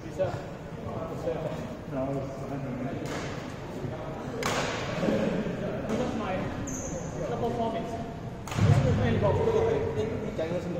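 Shuttlecocks are hit with rackets, sounding as sharp taps in a large echoing hall.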